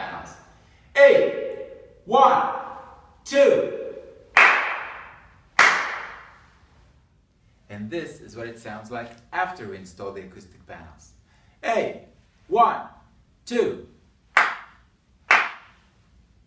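A man claps his hands sharply, each clap ringing out in an echoing room.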